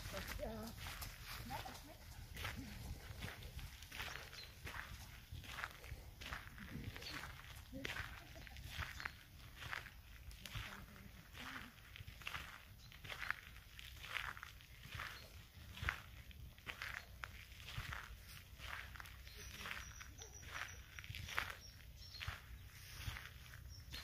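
Footsteps crunch steadily on a gravel path close by.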